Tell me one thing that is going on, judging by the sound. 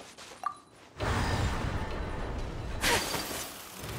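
A magical device hums and whooshes loudly as it activates.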